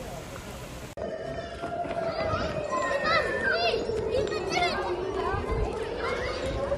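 Footsteps patter across a hard outdoor court.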